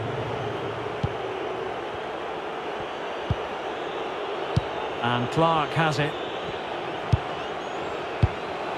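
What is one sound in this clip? A football is kicked several times.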